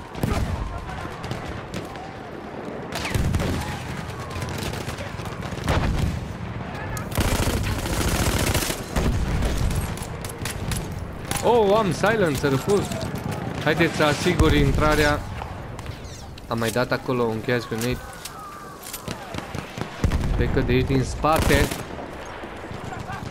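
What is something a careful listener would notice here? A rifle fires sharp, loud shots in bursts.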